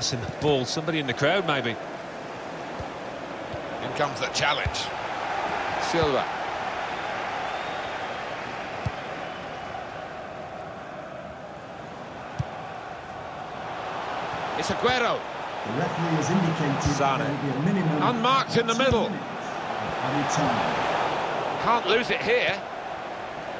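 A stadium crowd roars and murmurs steadily.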